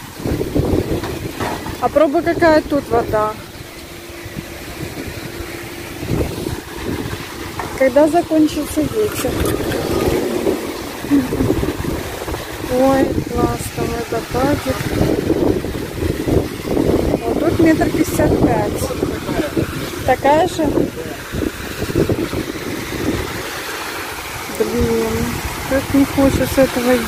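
Strong wind gusts and rumbles against the microphone outdoors.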